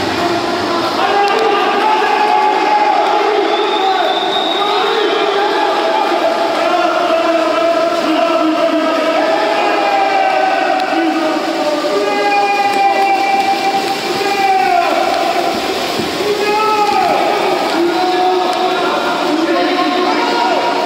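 Players splash and churn the water as they swim.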